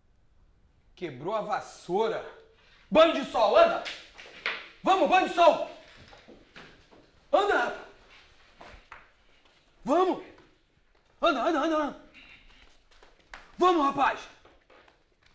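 A man speaks loudly and with agitation nearby.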